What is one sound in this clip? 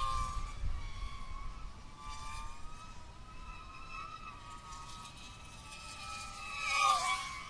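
Drone motors whine at a high pitch, rising and falling as the drone flies.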